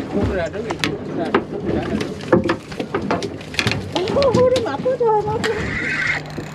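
A fishing net knocks and rattles against a boat.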